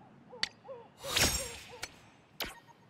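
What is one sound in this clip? A bright chime rings as an upgrade completes.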